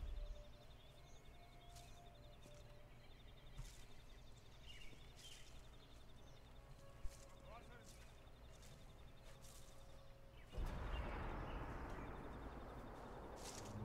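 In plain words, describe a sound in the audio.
Leaves and bushes rustle as someone creeps through undergrowth.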